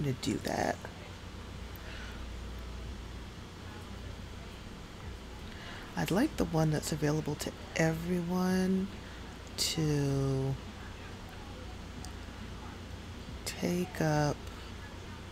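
A young woman talks animatedly and close to a microphone, in short bursts.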